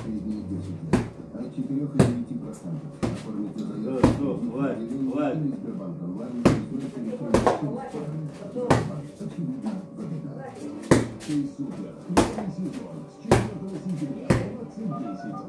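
Fists thud against a heavy punching bag at an uneven pace.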